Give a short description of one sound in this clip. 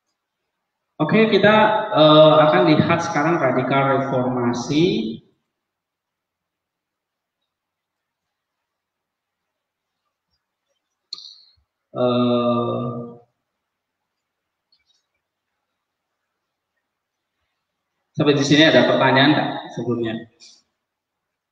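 A man speaks calmly through an online call, in short bursts with long pauses.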